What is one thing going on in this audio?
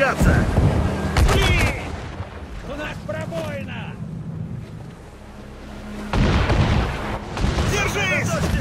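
Cannons fire in loud booming blasts.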